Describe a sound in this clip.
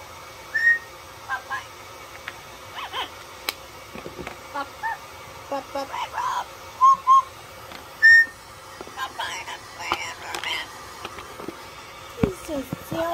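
A parrot whistles and chirps in short bursts close by.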